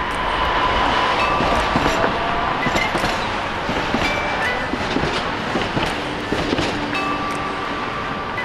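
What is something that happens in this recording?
A tram rumbles and squeals past on rails.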